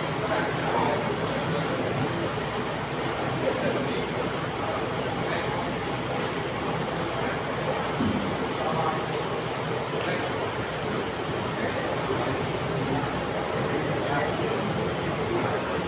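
Men talk close by as they greet each other.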